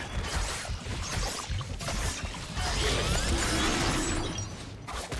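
Game combat sounds clash and whoosh as a dragon is attacked.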